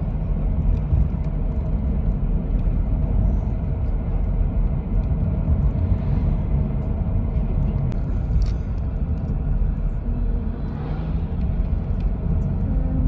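Tyres roll over the road with a steady low roar.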